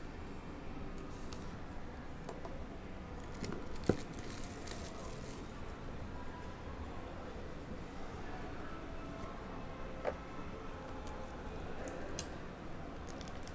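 Cardboard packaging scrapes and rustles as it is handled.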